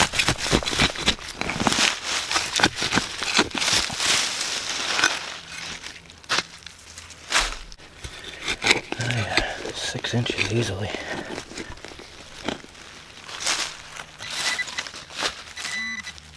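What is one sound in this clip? A trowel digs and scrapes into soil, crunching through dry leaves.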